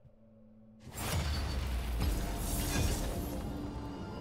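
A game alert swells up loudly.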